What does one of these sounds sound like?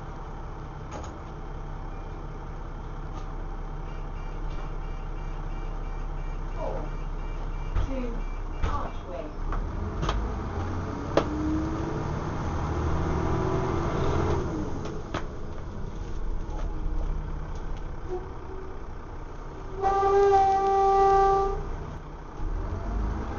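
A bus body rattles and clunks over bumps.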